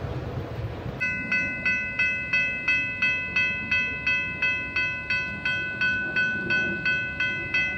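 A railway crossing bell rings rapidly and steadily, close by.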